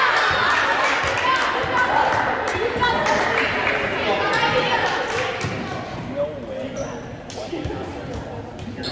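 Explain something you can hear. Shoes squeak on a wooden court in a large echoing gym.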